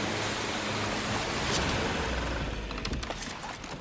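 Water splashes steadily underfoot.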